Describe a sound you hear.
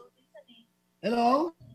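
A young man speaks over an online call.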